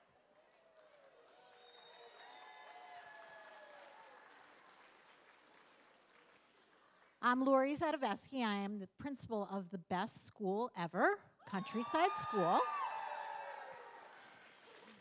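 An audience murmurs and laughs.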